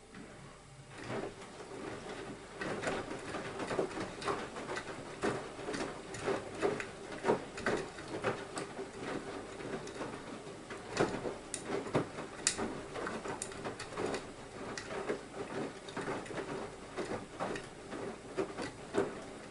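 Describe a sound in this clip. Water sloshes and splashes inside a washing machine drum.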